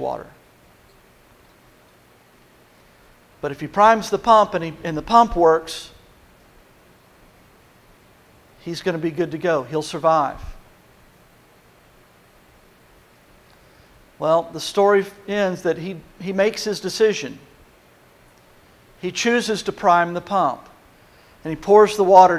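A middle-aged man speaks calmly through a microphone in a large echoing hall, with pauses between phrases.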